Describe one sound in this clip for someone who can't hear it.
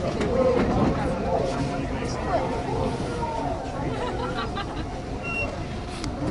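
A subway train rumbles along the tracks, echoing in a tunnel.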